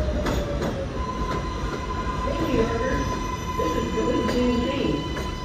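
A subway train's brakes squeal with a steady high whine.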